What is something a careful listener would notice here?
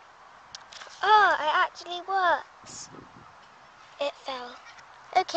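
A young child speaks close by in a high, lively voice.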